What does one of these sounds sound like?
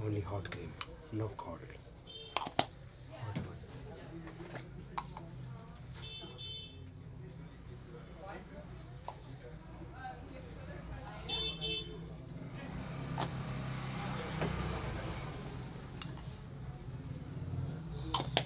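A shaving brush swishes and lathers cream on a man's face.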